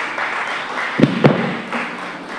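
A guitar knocks against something with a dull thump.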